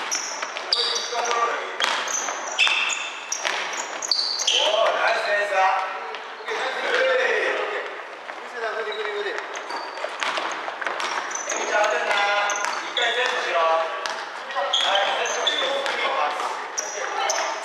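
Young men shout and call out to each other, echoing in a large hall.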